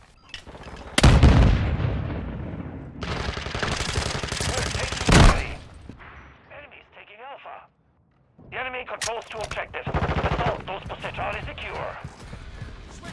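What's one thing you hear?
Guns fire in loud, sharp bursts.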